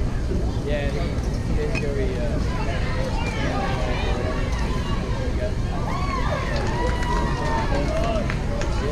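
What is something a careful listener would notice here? A crowd of spectators, children and adults, chatters and calls out nearby outdoors.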